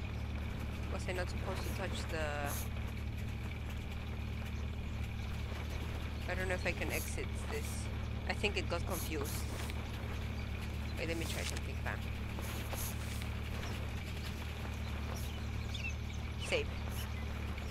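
A young woman speaks casually and close into a microphone.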